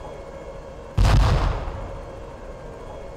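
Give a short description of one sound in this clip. A loud explosion booms in the distance.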